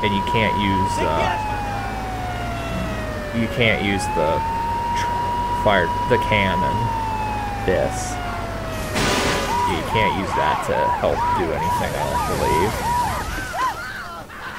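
A fire truck siren wails, rising and falling, then switches to a fast yelp.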